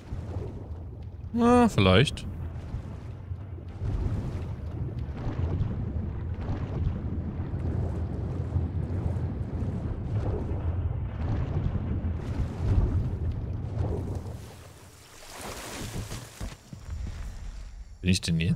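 A man talks through a microphone.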